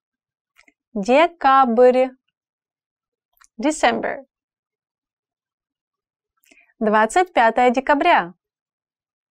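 A young woman speaks clearly and slowly into a close microphone, in short phrases with pauses.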